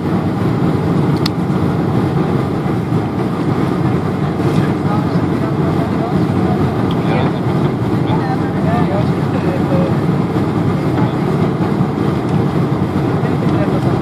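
Air rushes loudly past an aircraft cabin.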